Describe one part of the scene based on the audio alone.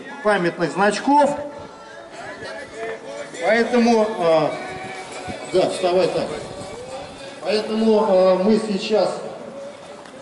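A man speaks through a loudspeaker outdoors.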